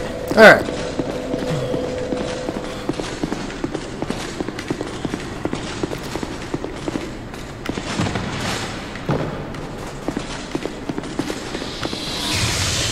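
Footsteps thud quickly and steadily on hard ground.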